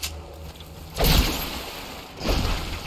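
Water splashes as someone swims through it.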